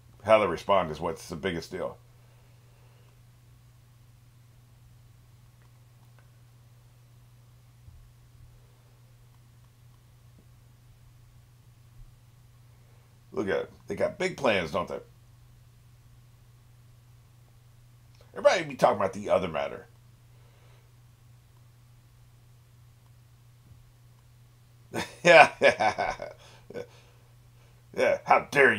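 An elderly man speaks casually into a microphone, in short bursts with pauses.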